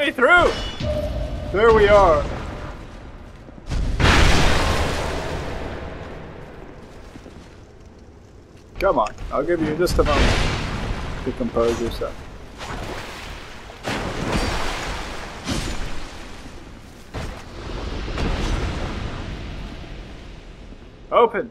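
Heavy blades clash and thud in a fight, with booming impacts that ring out.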